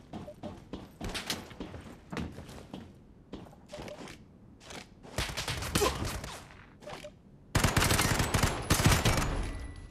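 A rifle fires gunshots in a video game.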